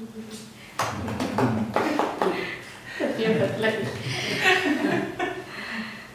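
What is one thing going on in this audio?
A middle-aged woman laughs close by.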